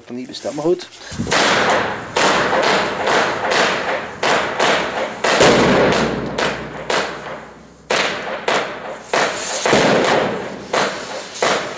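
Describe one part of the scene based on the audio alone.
Fireworks crackle and bang in rapid bursts, echoing off hard walls.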